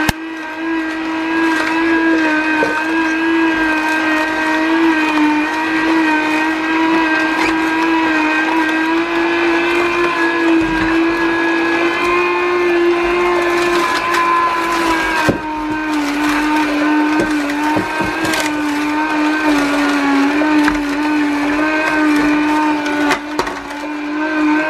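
A juicer motor hums steadily.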